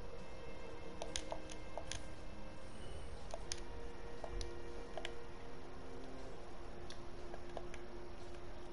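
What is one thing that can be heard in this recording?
Short menu clicks tick as a selection moves through a list.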